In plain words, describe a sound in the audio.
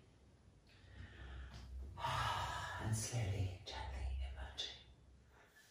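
A woman breathes in deeply in short, broken breaths.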